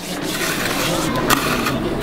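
A trowel scrapes across wet mortar.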